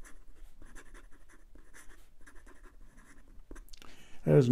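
A pen nib scratches quickly across paper.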